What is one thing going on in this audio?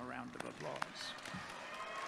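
An elderly man claps his hands.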